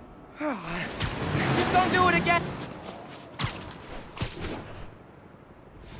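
Web lines whip and thwip in quick bursts as a masked hero swings between buildings.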